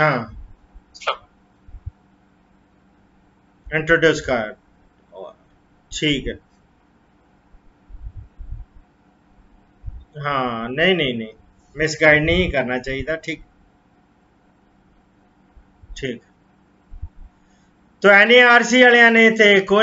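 A middle-aged man speaks calmly in short bursts, heard through an online call.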